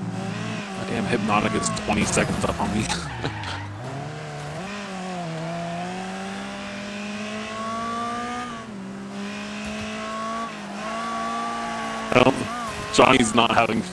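A racing car engine drones and revs up and down.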